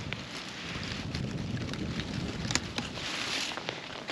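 A knife cuts through a thick plant stem.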